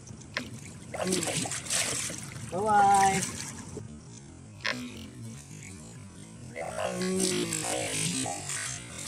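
A fish thrashes and splashes in shallow water.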